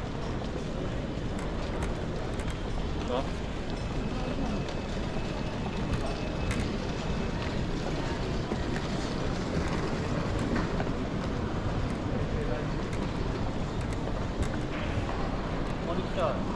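Suitcase wheels rumble steadily over a hard, smooth floor.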